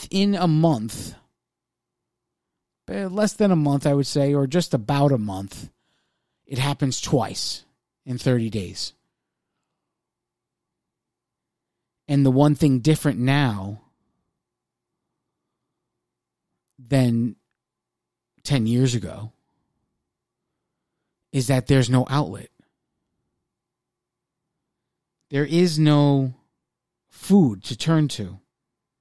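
A man speaks with animation into a microphone, in bursts with pauses.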